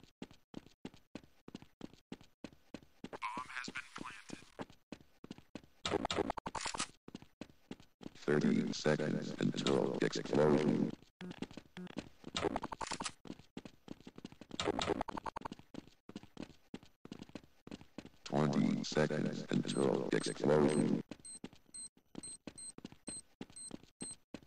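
Footsteps tread quickly and steadily on hard stone ground.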